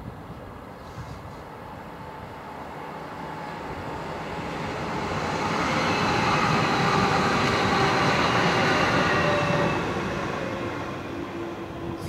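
An electric passenger train rumbles past on the line, swelling and then fading away.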